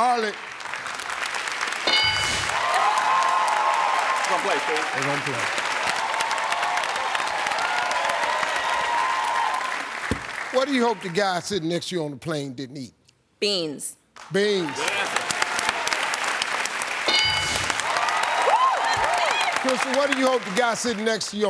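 A studio audience cheers and applauds loudly.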